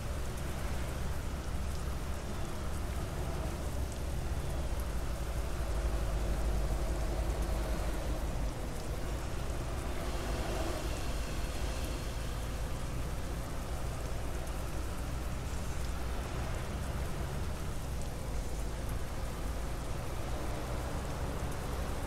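A bus engine hums steadily with a low rumble.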